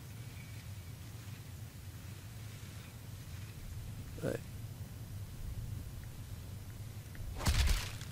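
Small footsteps patter softly on grass.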